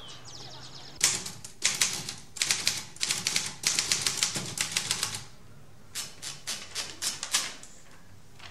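A typewriter clacks with quick keystrokes.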